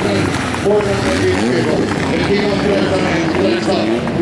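A race car engine roars and revs as the car speeds past.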